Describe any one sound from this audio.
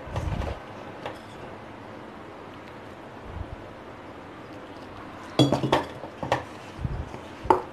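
A hand kneads and mixes dough in a metal bowl, with soft thumps and scrapes.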